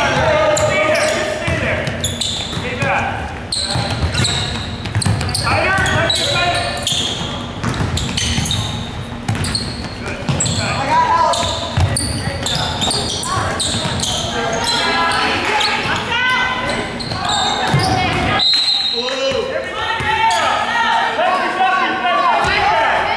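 A basketball thuds as it bounces on a wooden floor.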